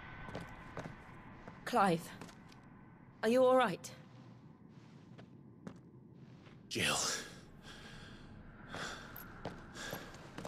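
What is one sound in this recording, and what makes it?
Heeled footsteps tap slowly on a stone floor.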